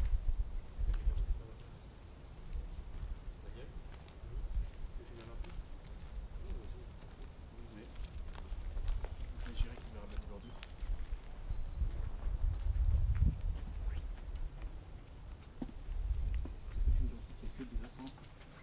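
Footsteps crunch through dry grass and twigs.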